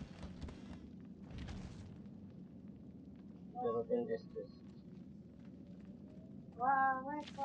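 Footsteps pad softly across a wooden floor.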